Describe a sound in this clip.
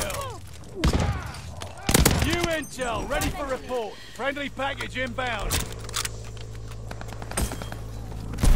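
A rifle fires sharp, loud shots, a few times.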